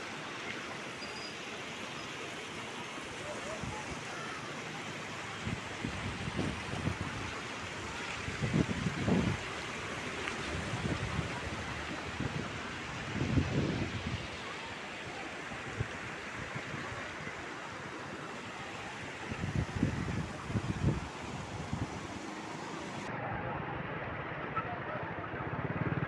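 A mountain river rushes loudly over rocks close by.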